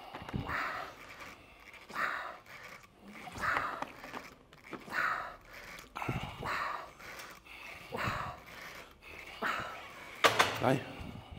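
A man exhales forcefully in a steady rhythm.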